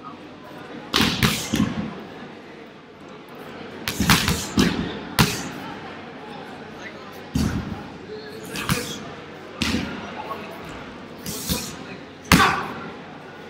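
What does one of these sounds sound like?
Feet thump and slap on a padded mat.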